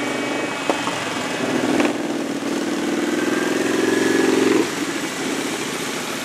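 Motorcycle engines rumble loudly as they ride past.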